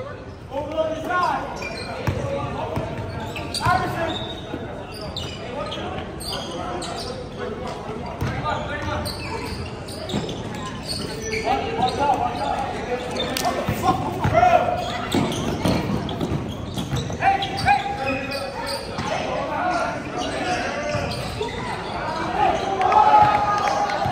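Young players shout and call out across a large echoing gym.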